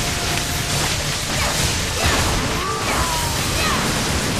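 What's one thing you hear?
A sword slashes with loud whooshing impacts.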